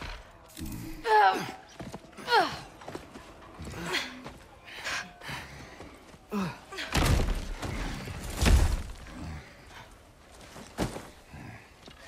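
A large man grunts and groans in pain, close by.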